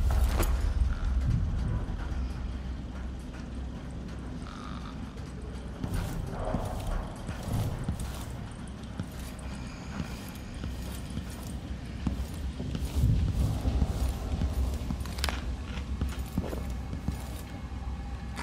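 Footsteps walk slowly across a wooden floor.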